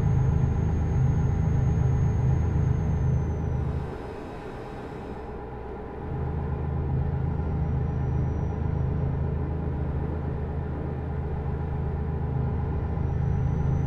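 A truck's diesel engine rumbles steadily, dipping briefly before picking up again.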